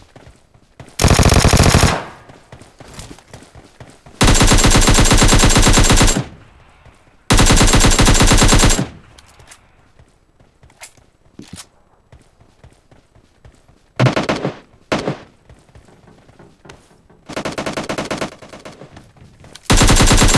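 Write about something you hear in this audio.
An automatic rifle fires in rapid, loud bursts.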